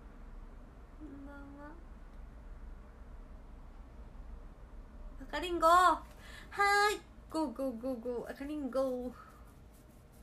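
A young woman speaks brightly and playfully close by.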